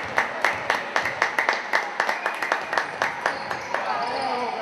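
A basketball bounces rhythmically on a wooden floor.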